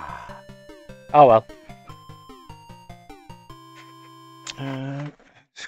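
Bleepy electronic game music plays a short tune, then stops.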